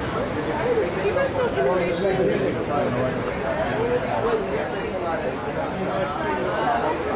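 A crowd of men and women chatter nearby in a busy room.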